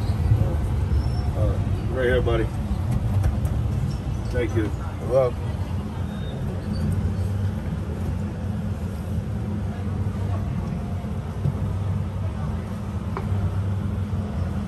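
Outdoors, wind rumbles steadily.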